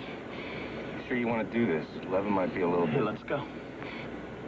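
A young man laughs out loud.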